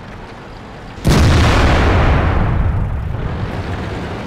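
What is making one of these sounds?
A tank cannon fires with a loud, booming blast that rolls away.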